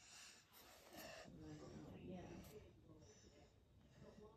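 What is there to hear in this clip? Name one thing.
A pencil scratches lightly across paper.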